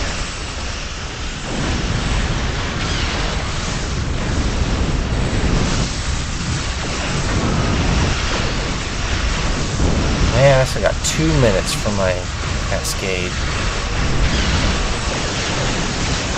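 Laser weapons fire rapidly in a dense space battle.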